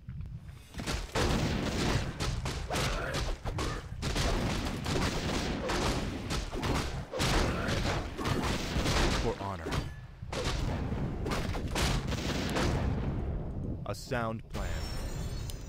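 Swords clash and clang in a noisy battle.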